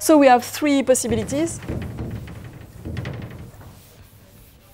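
A sponge wipes across a chalkboard.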